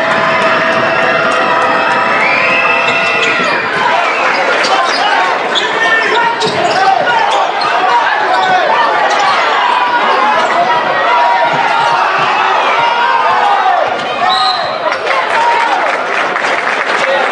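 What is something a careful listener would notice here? A large crowd cheers and shouts in an echoing arena.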